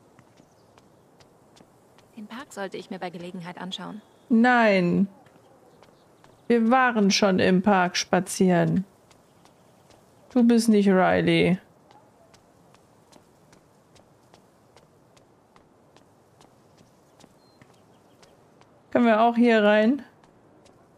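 Footsteps tap lightly on pavement.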